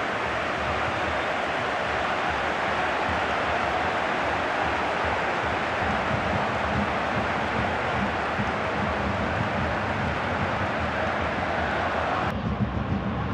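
A large stadium crowd roars and chants loudly.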